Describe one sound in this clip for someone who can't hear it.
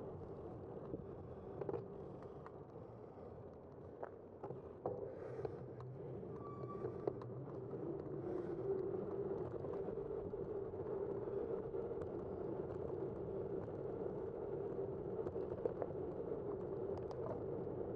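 Bicycle tyres hum steadily on pavement, growing louder as the ride speeds up.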